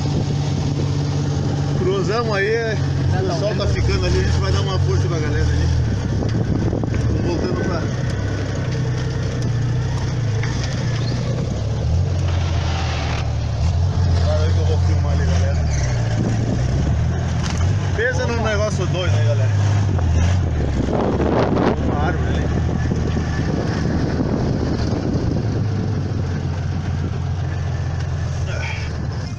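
An engine rumbles steadily throughout.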